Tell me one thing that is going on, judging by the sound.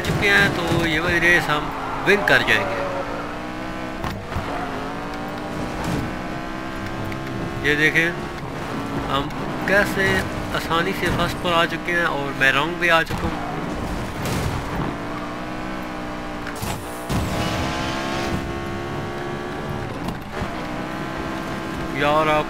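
Tyres screech as a car drifts through bends.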